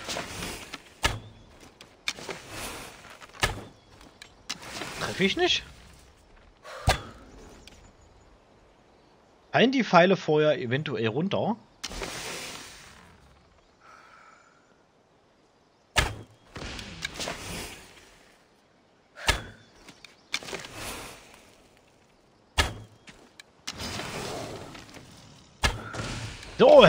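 A bowstring snaps sharply as arrows are loosed, again and again.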